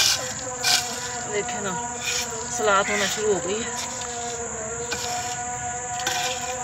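Hands crumble and scoop loose soil with a soft rustle.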